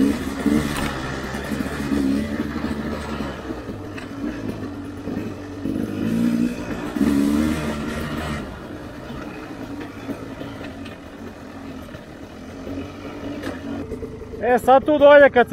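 A dirt bike engine hums and revs nearby.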